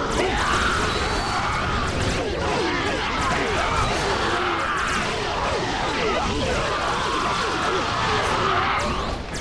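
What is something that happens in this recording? Blades slash and strike rapidly in a chaotic battle.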